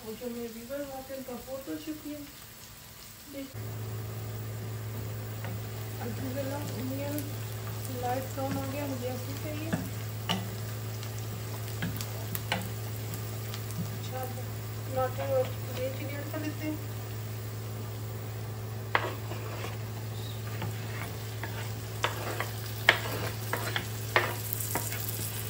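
Onions sizzle gently in a frying pan.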